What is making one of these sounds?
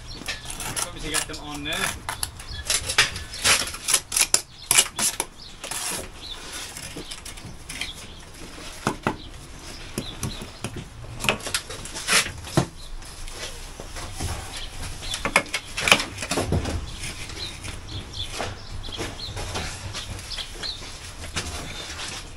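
A tool knocks and scrapes against brickwork close by.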